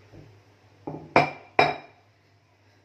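A metal lid clanks against a pot.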